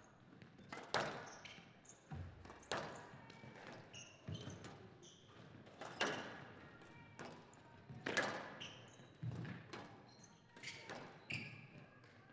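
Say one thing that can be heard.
A squash ball smacks hard against walls in a fast rally, echoing in a large hall.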